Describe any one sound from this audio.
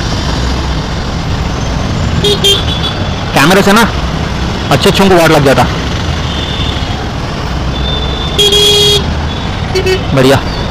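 A motorcycle engine hums steadily while riding.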